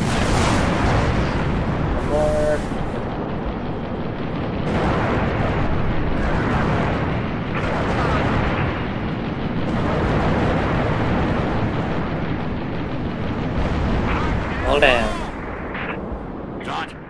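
A spaceship engine roars loudly.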